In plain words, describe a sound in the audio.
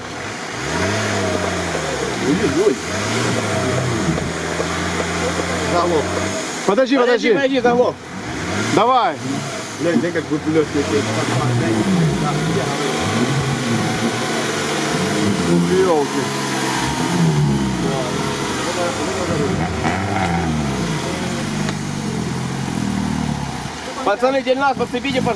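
Muddy water splashes and churns around car wheels.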